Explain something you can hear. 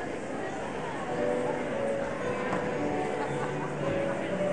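A choir sings.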